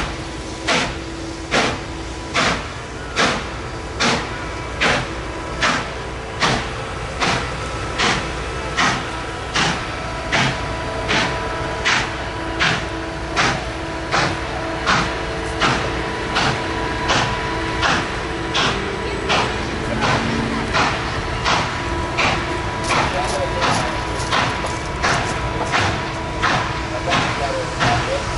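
A steam locomotive chuffs in loud, rhythmic beats as it pulls away.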